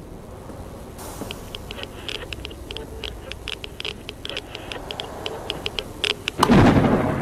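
Footsteps thud on creaking wooden boards.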